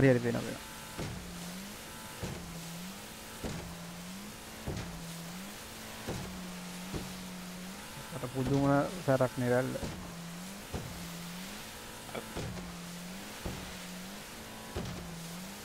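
A boat hull slaps hard against waves again and again.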